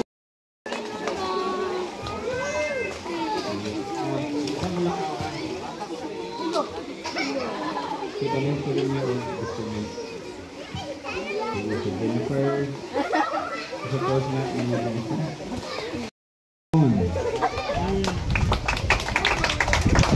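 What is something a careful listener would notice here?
A large crowd of people chatters outdoors.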